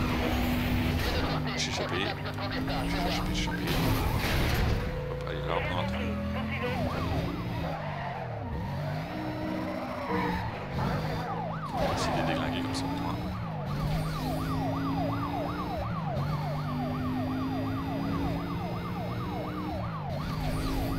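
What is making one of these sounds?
A racing car engine roars and revs at high speed.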